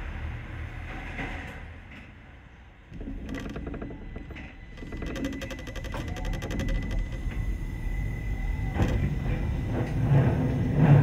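A tram's motor hums and its wheels rumble on the rails, growing louder as it picks up speed.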